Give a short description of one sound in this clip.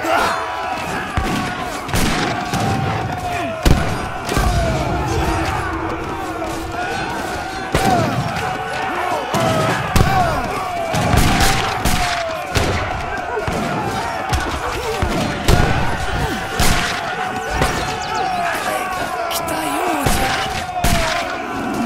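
Soldiers clash in a noisy battle.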